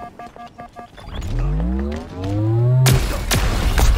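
A weapon charges up with a rising whine.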